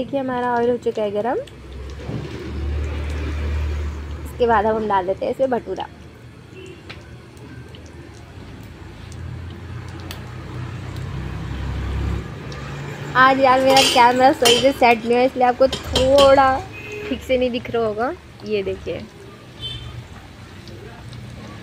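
Hot oil sizzles and bubbles in a pan.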